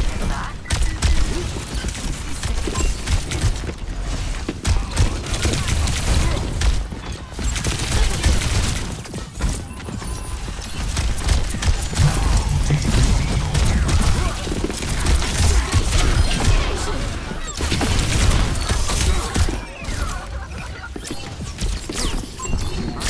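Rapid gunfire rattles on and off.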